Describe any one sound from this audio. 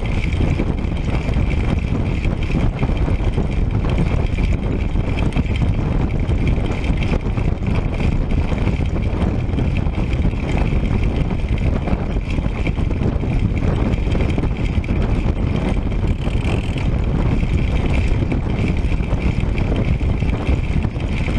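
Bicycle tyres hum on smooth asphalt.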